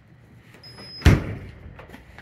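A refrigerator door shuts with a thud.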